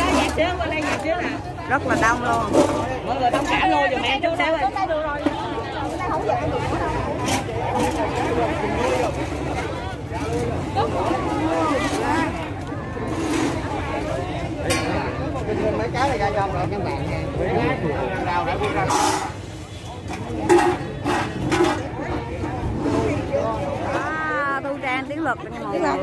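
A large crowd of men and women chatters and calls out all around, outdoors.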